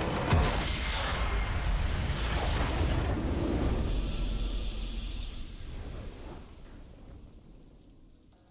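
A huge explosion roars and rumbles, then slowly fades away.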